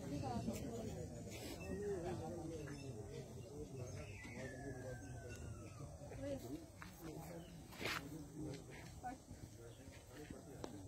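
Women chatter together in a crowd nearby.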